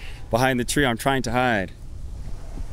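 A young man speaks loudly and with animation into a handheld microphone outdoors.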